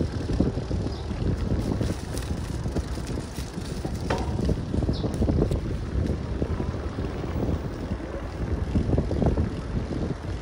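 Wind buffets a microphone on a moving bicycle, rumbling in gusts.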